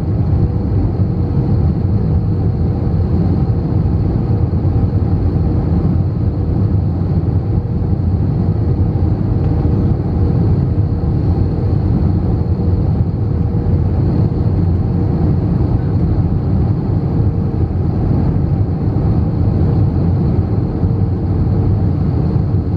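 Wind rushes loudly past an airliner's wing.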